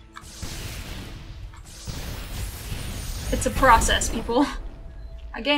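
A magical blast whooshes and rumbles.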